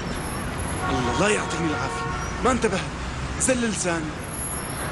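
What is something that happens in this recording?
A young man speaks with feeling, close by.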